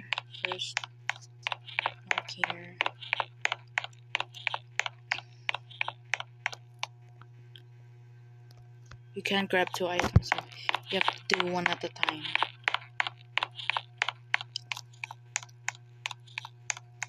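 Quick footsteps patter on the ground.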